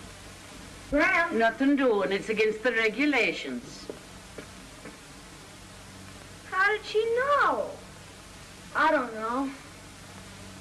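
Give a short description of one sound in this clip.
A young boy talks loudly.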